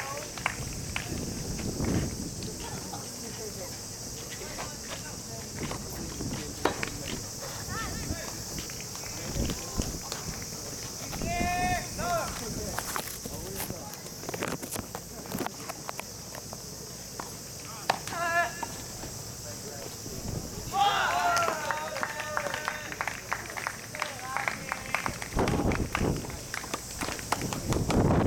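Tennis balls are hit with rackets, with sharp pops now and then.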